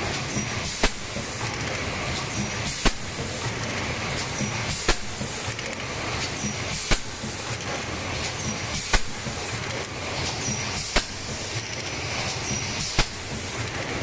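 A machine knocks sharply about every two seconds.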